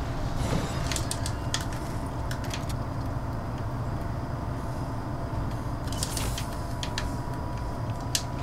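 Footsteps clang on metal containers.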